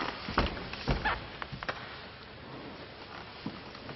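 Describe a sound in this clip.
Paper rustles close by.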